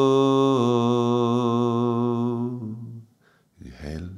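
A man chants a long, steady tone close to a microphone, then stops.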